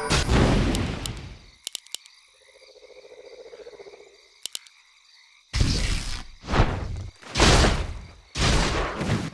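Magic spells blast with loud fiery bursts.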